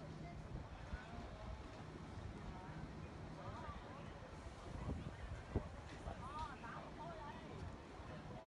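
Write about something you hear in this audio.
Adults chatter nearby outdoors.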